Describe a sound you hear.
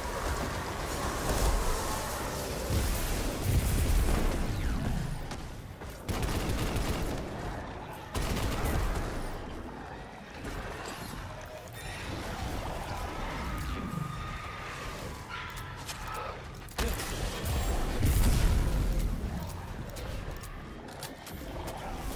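Guns fire in rapid bursts with loud booming blasts.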